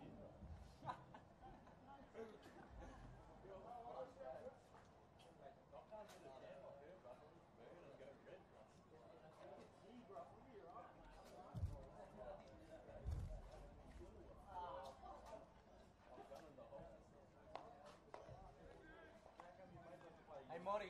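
A crowd of people chatters in the distance outdoors.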